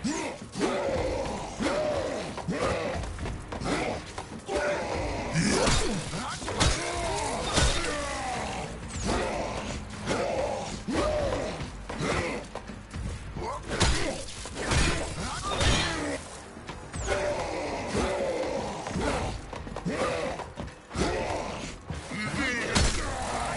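Heavy blows thud and clang in a struggle.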